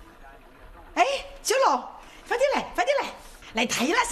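A young boy calls out loudly and excitedly nearby.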